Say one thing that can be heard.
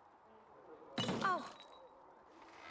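A young woman speaks close by in a lively voice.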